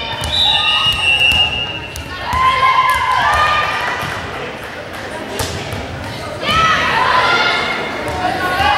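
Teenage girls call out to each other across the court.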